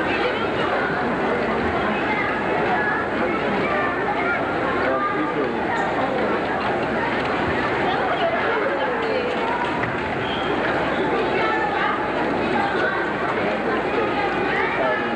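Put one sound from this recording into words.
A large crowd murmurs and chatters throughout a big echoing hall.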